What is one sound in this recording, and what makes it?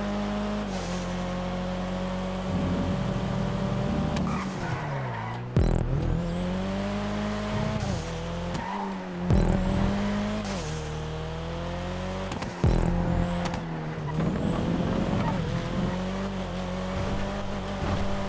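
A race car engine revs high, dropping and rising in pitch through gear shifts.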